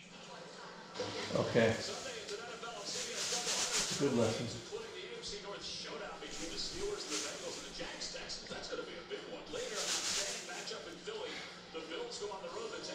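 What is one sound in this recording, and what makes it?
A television plays a broadcast with voices through its speakers.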